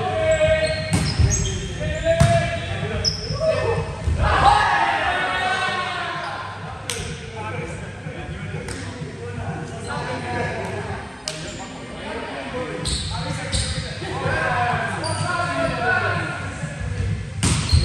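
A volleyball thumps off players' hands.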